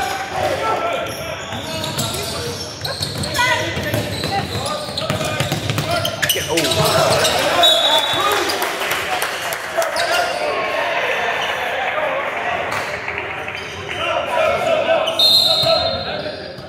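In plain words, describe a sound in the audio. Sneakers squeak sharply on a wooden court in a large echoing gym.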